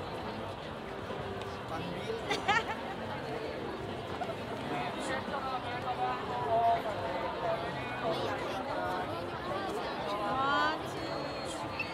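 Young women talk and exclaim.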